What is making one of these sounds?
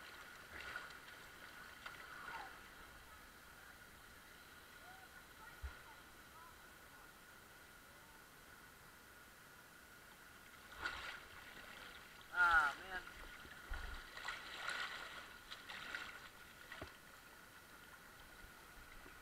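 Shallow river water rushes and gurgles over rocks close by.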